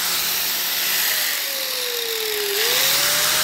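An angle grinder motor slows down and then speeds up again.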